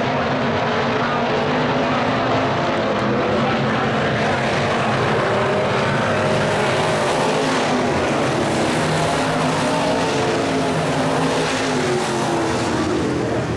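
Stock car V8 engines roar as the cars race around a dirt track.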